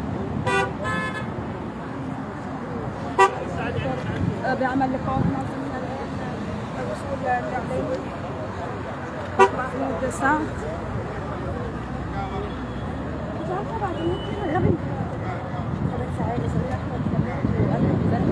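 Several men and women talk and call out nearby outdoors.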